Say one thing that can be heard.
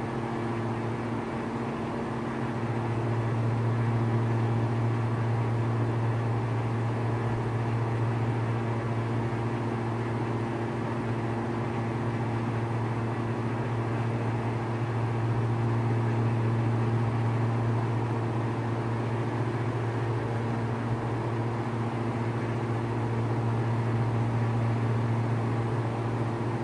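A small plane's propeller engine drones steadily from inside the cockpit.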